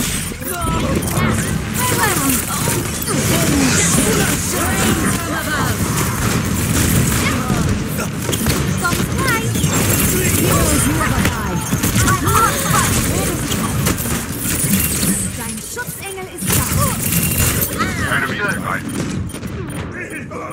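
Pistols fire in rapid bursts.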